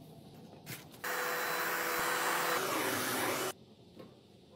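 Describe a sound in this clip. A cordless stick vacuum runs across a wooden floor.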